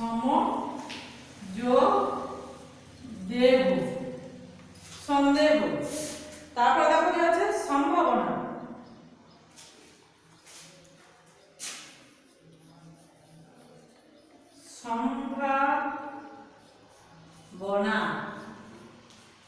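A young woman speaks loudly and slowly, as if teaching, close by.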